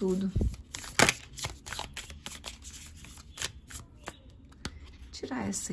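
Playing cards riffle and flick as they are shuffled close by.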